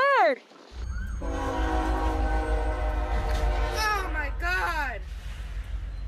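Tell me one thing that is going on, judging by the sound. A freight locomotive horn blares.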